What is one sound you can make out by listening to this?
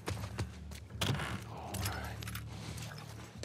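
A wooden crate lid creaks open.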